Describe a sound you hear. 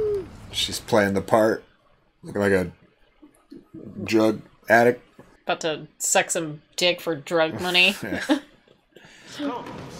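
A young woman talks and laughs close to a microphone.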